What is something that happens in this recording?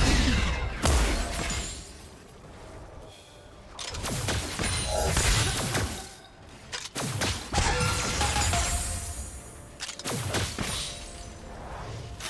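Magic spells burst and crackle in a battle.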